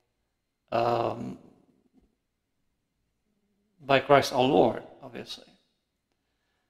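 A middle-aged man speaks slowly and solemnly into a close microphone, with pauses.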